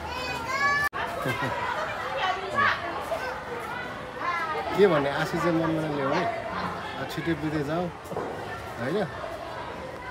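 A man talks cheerfully and laughs close by.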